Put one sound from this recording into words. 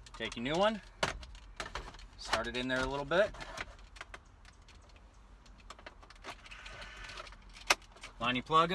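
A plastic panel clicks and rattles as it is handled.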